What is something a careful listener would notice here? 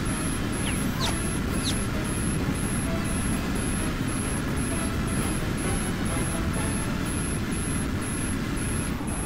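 A jet engine roars steadily.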